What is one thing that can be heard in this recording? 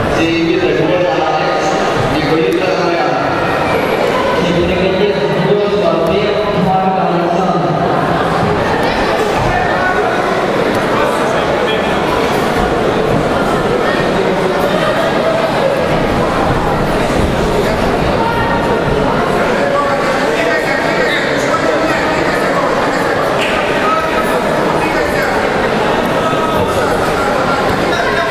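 A crowd murmurs and chatters steadily in a large echoing hall.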